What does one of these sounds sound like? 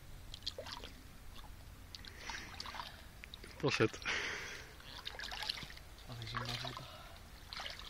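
Water splashes and trickles as hands scoop at a pond's edge.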